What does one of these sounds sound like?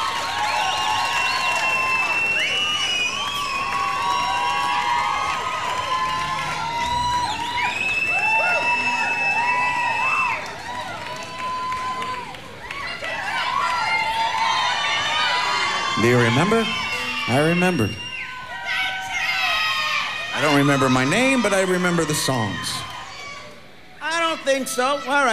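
A large crowd cheers, shouts and whistles in an echoing hall.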